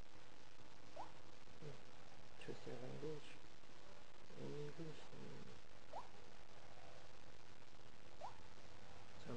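A phone gives short soft beeps as its touchscreen is tapped.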